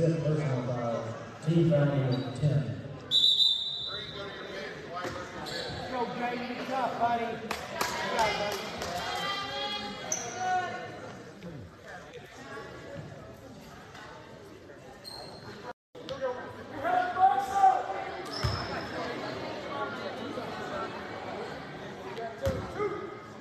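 A crowd chatters and murmurs in a large echoing gym.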